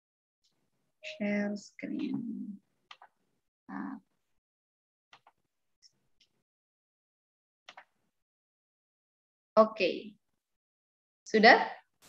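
A young woman speaks calmly through an online call, in short bursts with pauses.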